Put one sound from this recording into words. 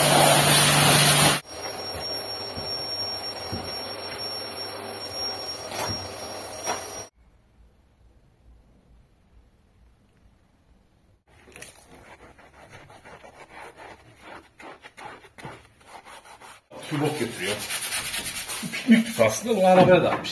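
A pressure washer sprays water with a loud hiss.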